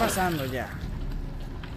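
A man speaks with animation into a headset microphone.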